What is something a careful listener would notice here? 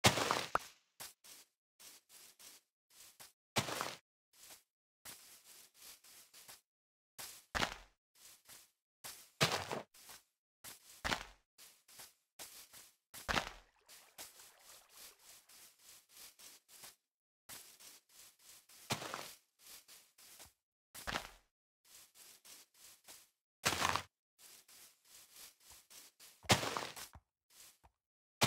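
Footsteps thud softly on grass at a steady walking pace.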